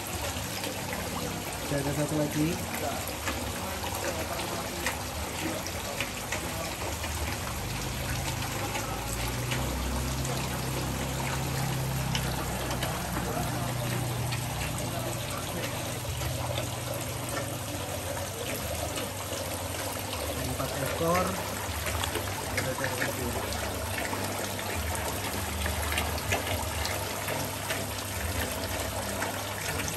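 Water trickles and bubbles steadily from a filter.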